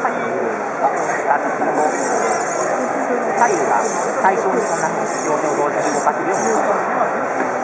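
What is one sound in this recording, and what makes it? A small robot's servo motors whir in short bursts as it moves its arms.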